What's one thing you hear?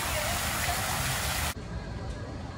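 A fountain splashes steadily into a basin.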